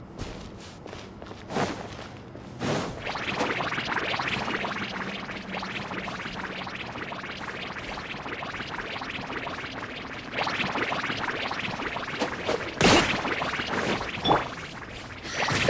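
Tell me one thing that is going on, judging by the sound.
Footsteps run over soft sand.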